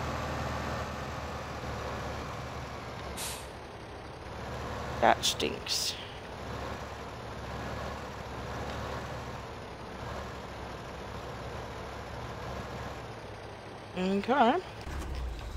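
A tractor engine rumbles steadily at low speed.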